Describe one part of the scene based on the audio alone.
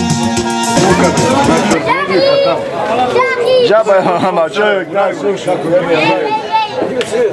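A crowd of adults and children chatters loudly in a large, echoing hall.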